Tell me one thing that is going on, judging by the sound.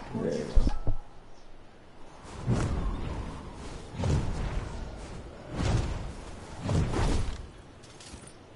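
Large wings whoosh and flap as a figure glides down.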